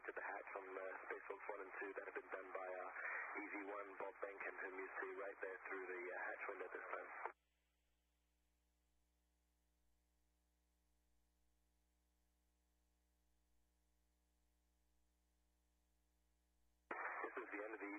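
A man speaks calmly over a crackly radio link.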